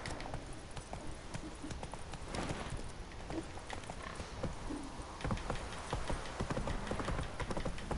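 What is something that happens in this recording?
Horse hooves clop and pound on the ground at a gallop.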